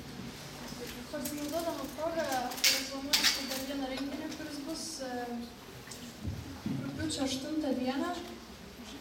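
A young woman sings through a microphone and speaker.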